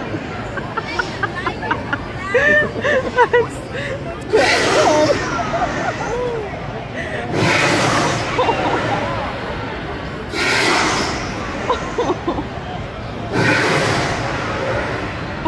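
A crowd of people chatters and cheers nearby, outdoors.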